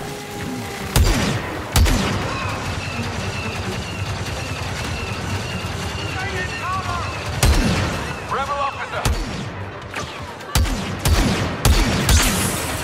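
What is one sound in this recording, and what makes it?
Rifle shots crack sharply now and then.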